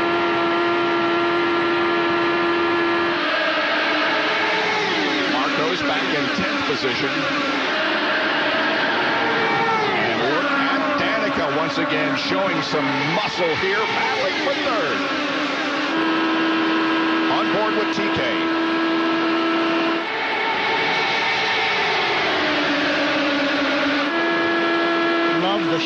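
A race car engine screams at high revs up close.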